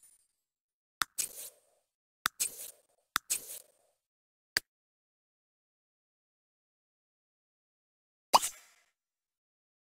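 Short game interface clicks pop now and then.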